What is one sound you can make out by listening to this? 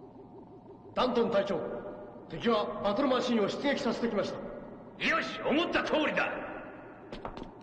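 A man reports urgently.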